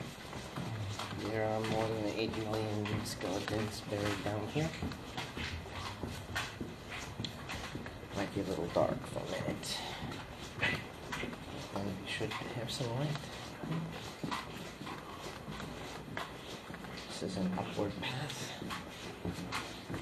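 A man talks nearby in an echoing space.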